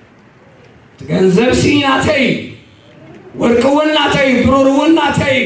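A man speaks loudly and with emphasis through a microphone in a large echoing hall.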